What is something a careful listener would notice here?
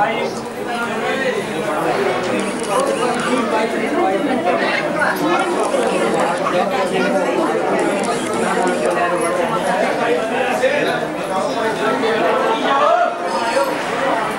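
A crowd of men and women chatter in an echoing hall.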